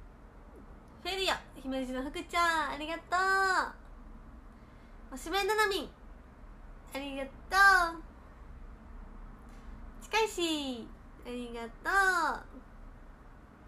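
A young woman speaks brightly and cheerfully, close to a microphone.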